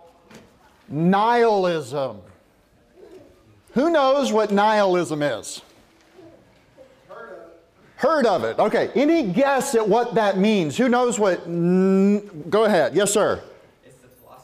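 A man preaches with animation through a microphone and loudspeakers in an echoing room.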